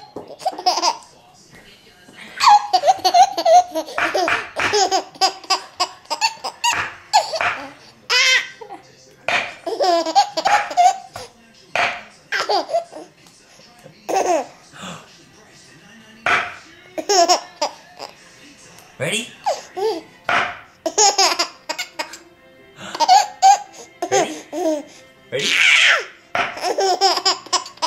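A baby laughs loudly in bursts, close by.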